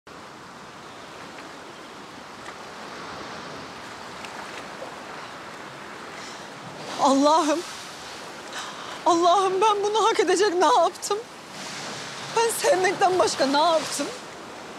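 Gentle waves wash onto a sandy shore.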